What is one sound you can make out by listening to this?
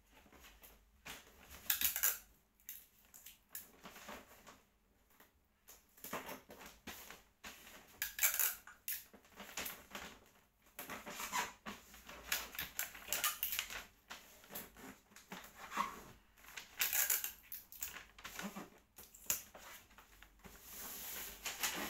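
A child shifts and rustles about on a hard floor close by.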